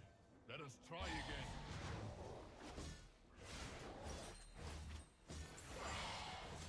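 Video game fight effects clash and burst in quick bursts.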